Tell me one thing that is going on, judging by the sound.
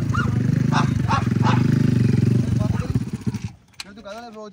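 A motorcycle engine revs loudly nearby.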